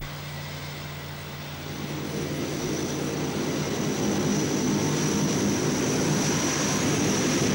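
A jet airliner roars as it flies low overhead.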